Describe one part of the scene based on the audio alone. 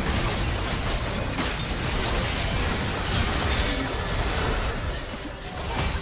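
Game spell effects crackle and burst in quick succession.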